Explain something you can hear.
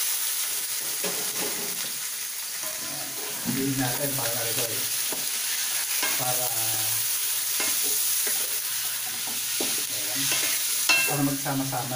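A spatula scrapes and clatters against a metal pan.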